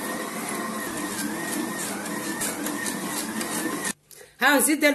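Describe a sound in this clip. A stand mixer motor whirs steadily.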